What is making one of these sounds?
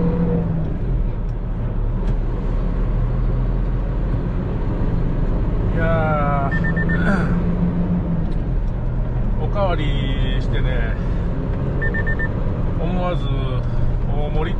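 A truck engine rumbles steadily while driving along a road.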